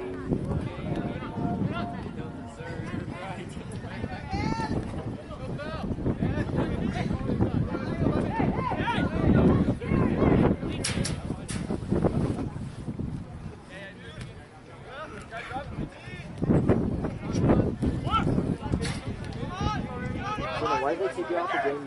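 A soccer ball is kicked with dull thuds.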